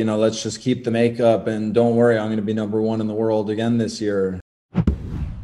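A man talks with animation through a microphone, as if on an online call.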